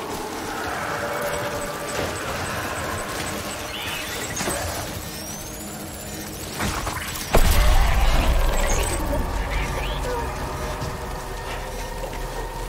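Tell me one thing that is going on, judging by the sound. Footsteps tramp over grass.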